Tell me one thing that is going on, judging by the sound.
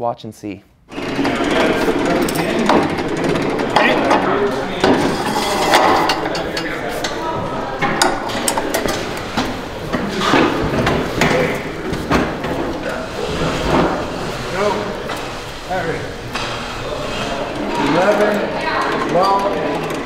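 Several men talk to each other nearby.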